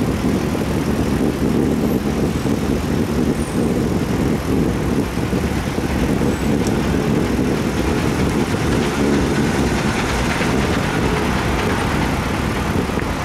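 City traffic hums and rumbles nearby.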